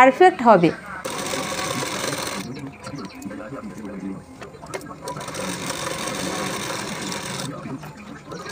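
A sewing machine whirs steadily in short runs.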